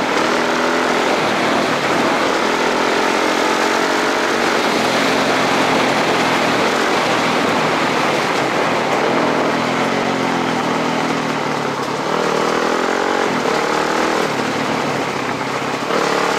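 Tyres crunch steadily over loose gravel.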